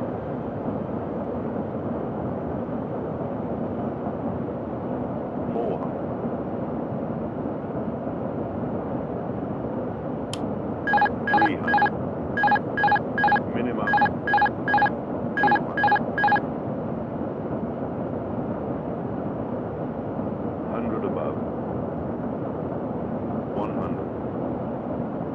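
Jet engines hum with a steady low roar.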